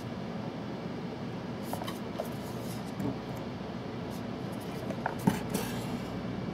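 A small metal box knocks lightly as it is handled.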